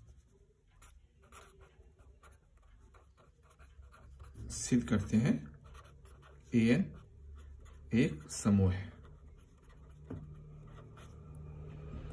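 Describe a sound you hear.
A pen scratches softly on paper as it writes.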